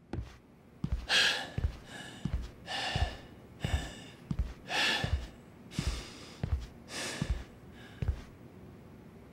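A man pants heavily and breathes hard.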